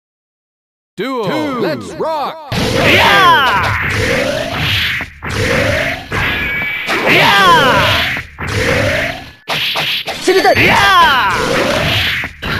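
Fighting game music plays loudly.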